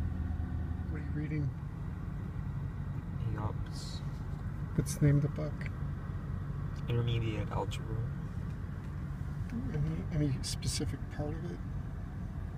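A young man speaks quietly and briefly, close by.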